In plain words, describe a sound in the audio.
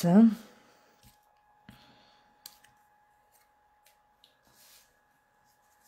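Stiff paper rustles and taps softly as it is handled.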